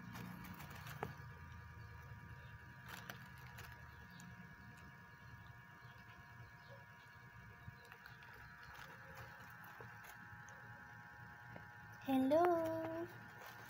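A hamster nibbles on a flower.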